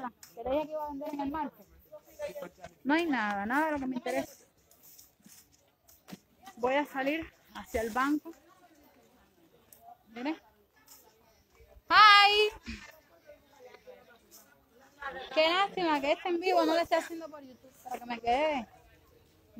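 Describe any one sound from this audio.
A woman talks with animation close to a phone's microphone, outdoors.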